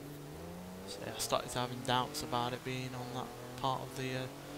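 Tyres skid and squeal on a road.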